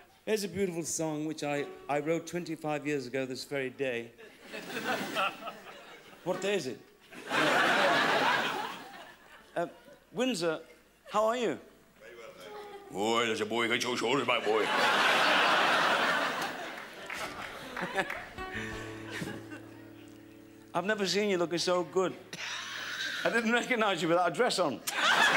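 A middle-aged man speaks with animation into a microphone to an audience.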